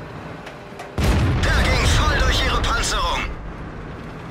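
A tank cannon fires with a loud boom that echoes away.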